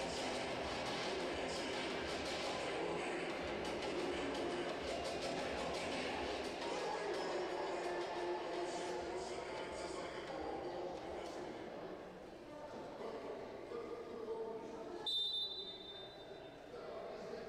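Many people chatter at a distance in a large echoing hall.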